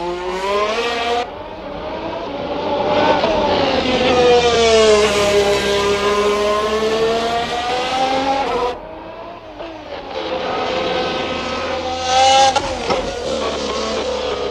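A racing car engine screams at high revs, rising and falling in pitch as it shifts gears.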